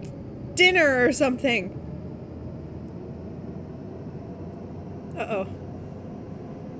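A low, steady airplane cabin hum drones throughout.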